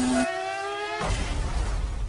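A racing car crashes into a barrier with a loud impact.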